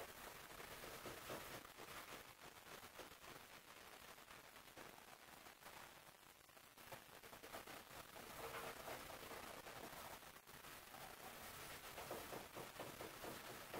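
Sandpaper rasps back and forth over a hard surface by hand.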